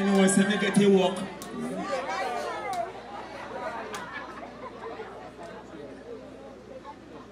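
A young man talks loudly and with animation into a microphone over loudspeakers.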